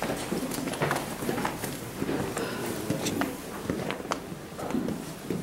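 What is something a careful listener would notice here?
Footsteps scuff and shuffle on rough stone.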